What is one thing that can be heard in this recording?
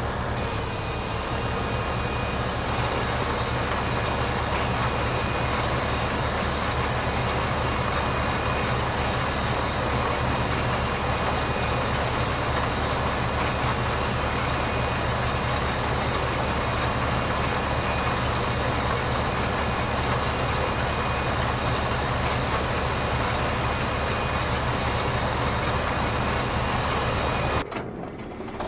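A tractor engine drones steadily.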